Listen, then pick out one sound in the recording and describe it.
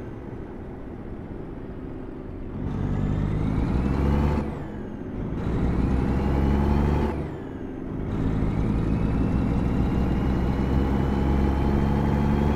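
A heavy truck engine rumbles and revs up through its gears, rising in pitch and dropping with each shift.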